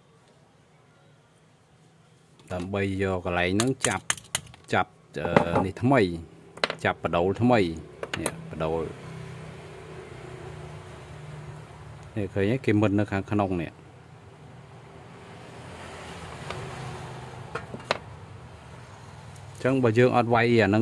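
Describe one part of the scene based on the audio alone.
Small metal parts click and scrape as they are handled.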